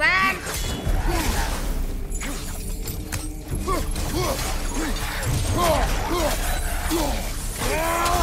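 Metal blades swing and strike with sharp clangs.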